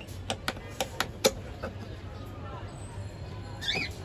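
A metal latch clicks open.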